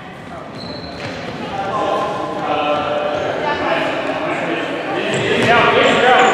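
Young girls shout and call out to each other in a large echoing hall.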